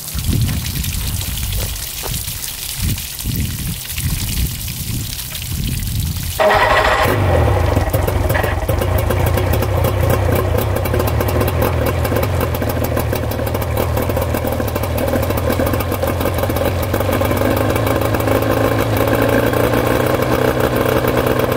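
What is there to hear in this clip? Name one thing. Water sprays and splashes onto gravel outdoors.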